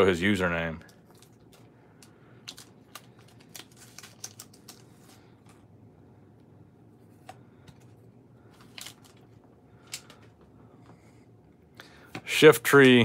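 Cards and a plastic sleeve rustle and click softly in someone's hands.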